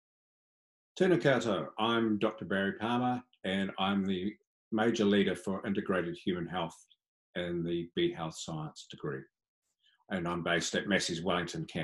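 A man speaks calmly and clearly through a microphone over an online call.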